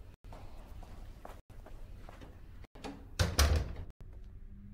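A door swings shut with a thud.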